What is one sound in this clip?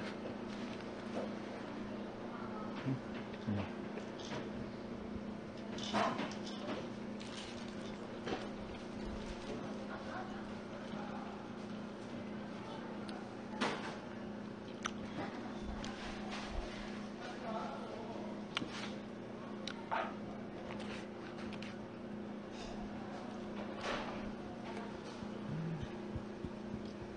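People chew and munch on food close by.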